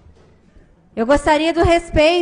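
A woman speaks into a microphone, heard over a loudspeaker.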